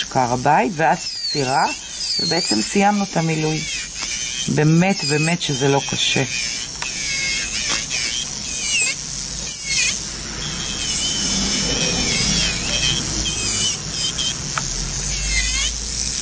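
An electric nail drill whirs steadily.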